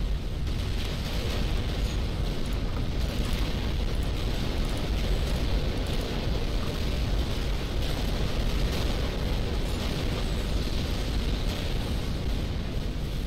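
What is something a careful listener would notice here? Game battle explosions and weapon fire rumble steadily.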